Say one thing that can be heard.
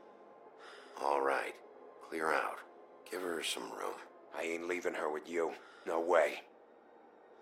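A man speaks in a low, firm voice.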